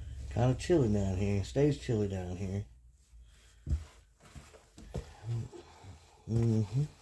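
Gloved hands rake and rustle through loose soil.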